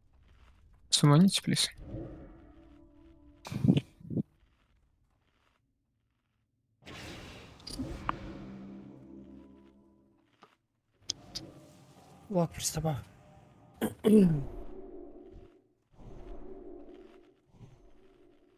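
Magic spells whoosh and ring out in bursts.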